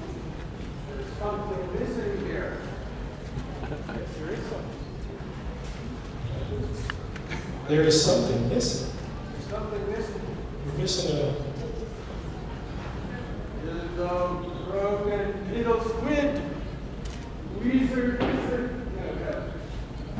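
A man speaks in a character voice in a large echoing hall.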